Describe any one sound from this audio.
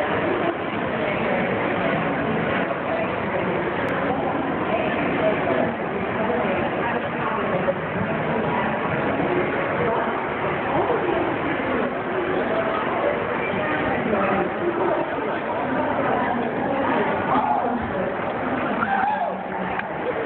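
A crowd of people chatters in a large indoor hall.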